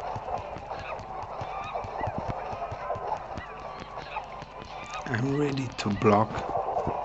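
Cartoonish punches land with quick, soft thuds.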